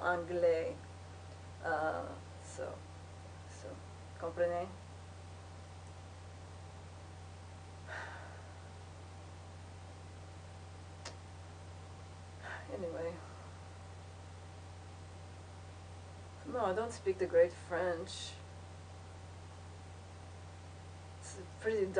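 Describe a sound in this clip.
A young woman speaks calmly and quietly, close by, in short bursts with pauses.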